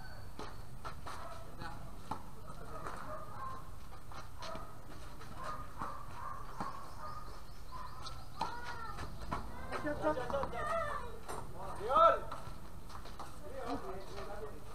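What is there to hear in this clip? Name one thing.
Tennis balls are struck with rackets, with sharp pops back and forth.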